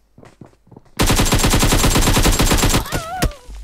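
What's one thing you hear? A rifle fires in a rapid, loud burst close by.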